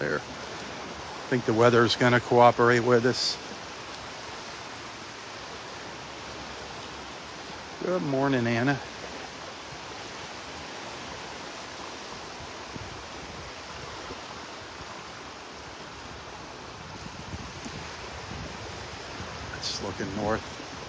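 Small waves lap gently at a sandy shore.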